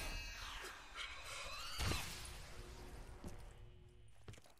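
A shimmering, wavering electronic tone swells and then fades.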